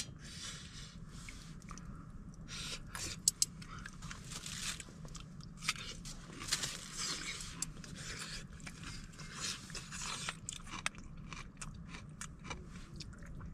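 Chopsticks clink against a metal pan.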